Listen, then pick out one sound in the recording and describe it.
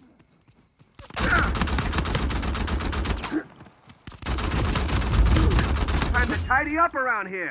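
A rifle fires rapid bursts at close range.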